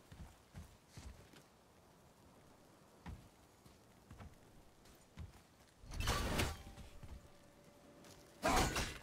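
Heavy footsteps crunch on rock.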